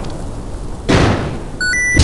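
An explosion bursts with a low boom.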